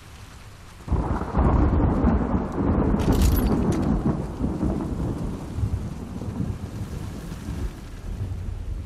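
Heavy rain pours down outside.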